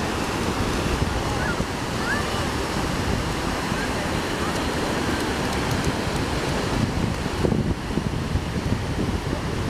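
Waves crash and wash steadily onto the shore.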